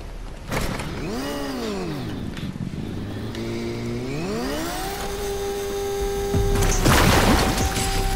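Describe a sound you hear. A motorbike engine revs up and down.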